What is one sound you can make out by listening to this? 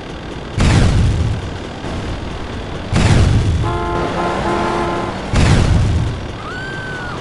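Loud explosions boom one after another.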